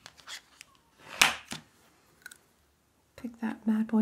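A plastic card scrapes across a metal plate.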